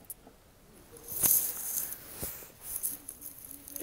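A padded jacket rustles as a woman moves.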